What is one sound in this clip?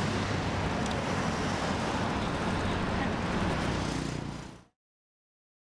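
Traffic rumbles past on a busy road outdoors.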